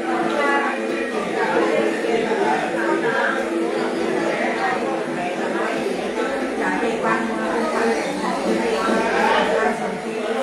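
An elderly woman sings in a wavering voice close by.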